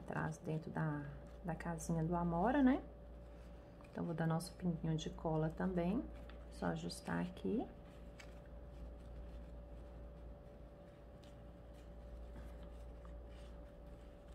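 Fabric ribbon rustles softly as hands fold and press it.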